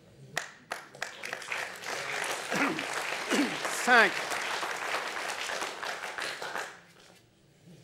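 A crowd applauds loudly and then stops.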